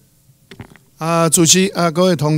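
An elderly man speaks loudly into a microphone.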